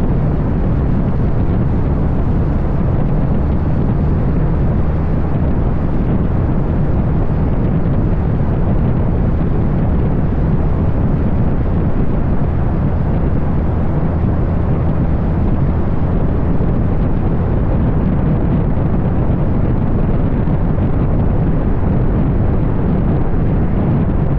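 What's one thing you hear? Wind rushes loudly past a microphone outdoors.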